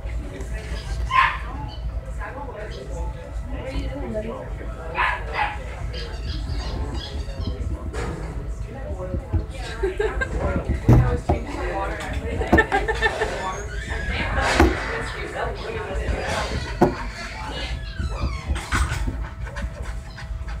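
Fingers tap and scratch on a wooden floor close by.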